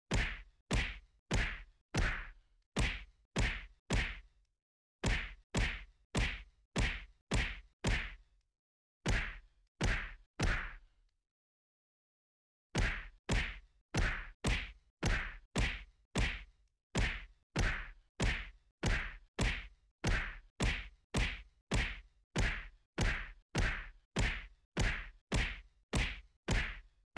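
Punches land on a training dummy in a quick, steady rhythm.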